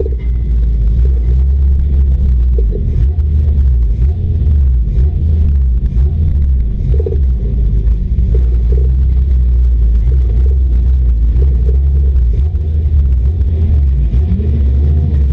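A stock car engine roars under load, heard from inside the cabin.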